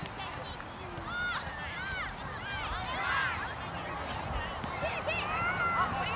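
Young children shout and cheer excitedly outdoors.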